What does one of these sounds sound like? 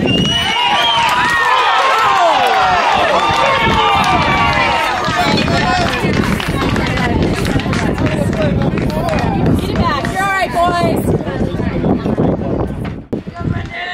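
Young male players shout and cheer outdoors.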